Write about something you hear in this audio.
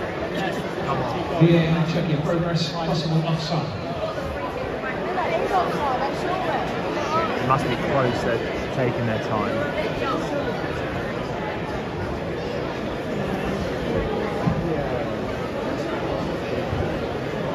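Fans in a stadium crowd shout and whistle now and then.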